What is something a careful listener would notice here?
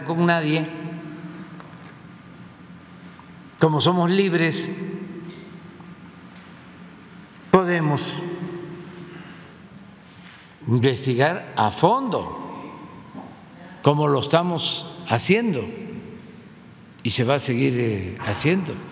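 Each phrase echoes and fades slowly through a large room.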